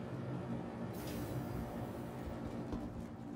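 Sliding metal doors hiss open.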